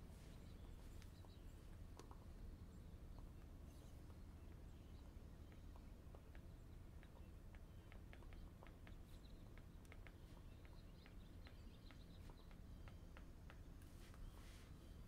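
A stylus taps and clicks on a tablet's glass.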